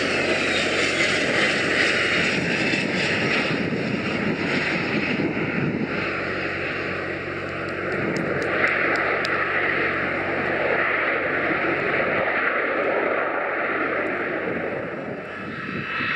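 Jet engines roar as a plane rolls down a runway.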